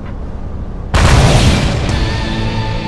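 A gun fires a loud blast.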